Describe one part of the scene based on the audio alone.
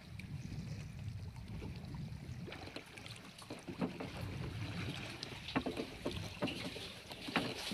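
Waves slap against a boat's hull.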